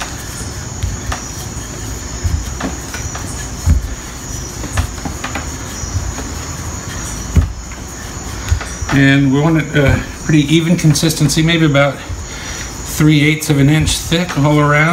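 A wooden rolling pin rolls and thumps softly over dough on a stone board.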